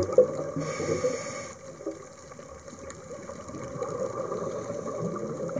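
Water rumbles in a low, muffled way underwater.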